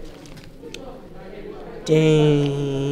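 Paper pages rustle as they are turned.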